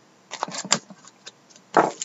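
A blade slits plastic wrapping.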